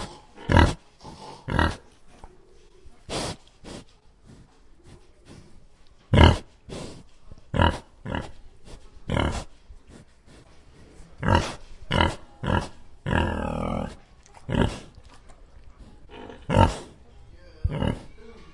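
Pigs grunt repeatedly in short bursts.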